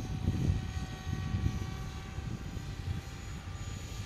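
Wind gusts into the microphone outdoors.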